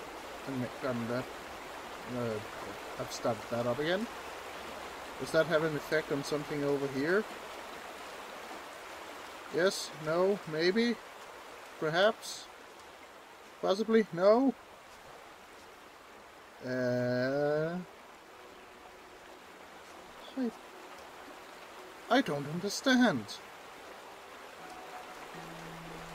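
A river rushes over rocks.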